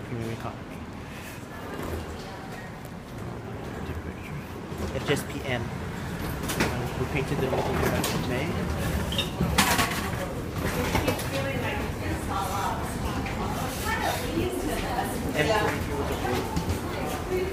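A crowd of people talks and murmurs nearby in an echoing passage.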